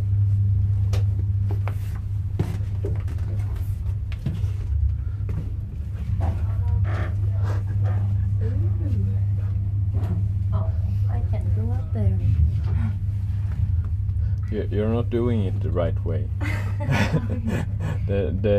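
A steady low hum of machinery fills an enclosed space.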